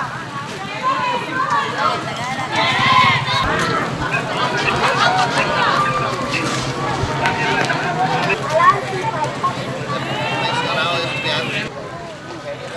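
A crowd of people talks and shouts outdoors.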